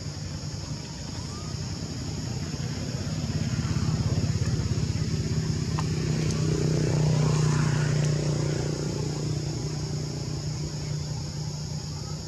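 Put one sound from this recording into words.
Monkeys scamper through grass.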